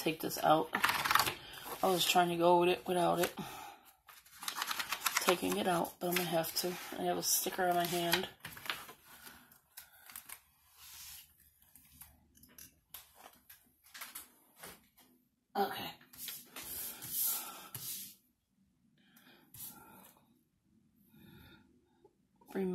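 Paper pages rustle and flip as they are handled.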